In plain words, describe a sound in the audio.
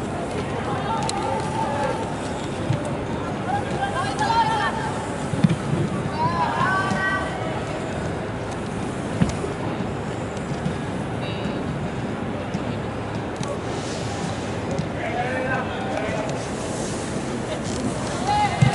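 Young women players shout to one another in a large echoing hall.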